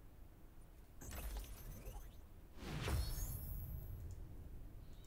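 A whooshing game effect sounds as an item is crafted.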